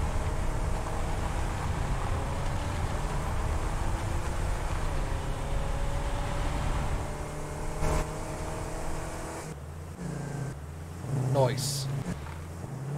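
A buggy engine hums and rumbles steadily.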